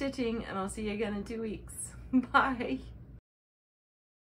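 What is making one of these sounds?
A middle-aged woman speaks warmly and close to the microphone.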